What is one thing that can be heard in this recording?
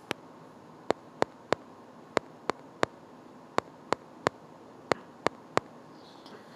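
A phone keypad clicks with short, quick taps.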